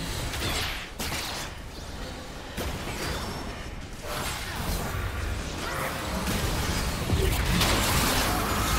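Game weapons clash and strike in quick hits.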